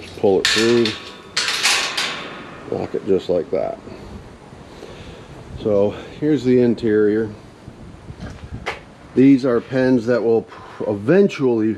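A metal gate rattles as a hand moves it.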